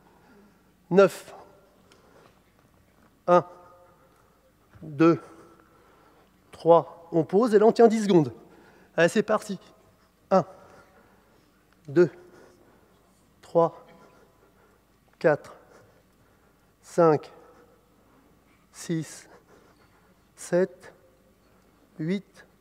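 A man counts out loud in short, even bursts, in time with the exercise.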